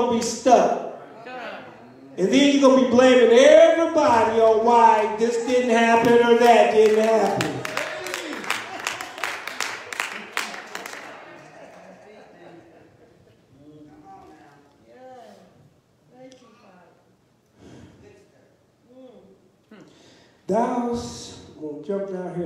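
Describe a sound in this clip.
A man speaks with feeling into a microphone, echoing through a large hall.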